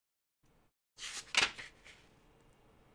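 Paper rustles as a page is turned.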